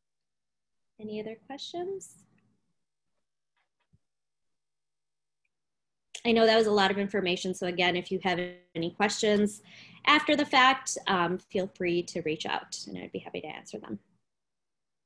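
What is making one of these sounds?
A young woman speaks calmly over an online call, with pauses.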